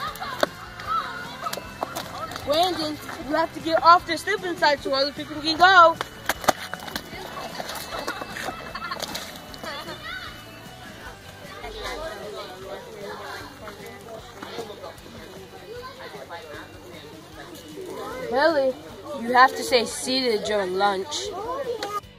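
Children shout and laugh excitedly outdoors.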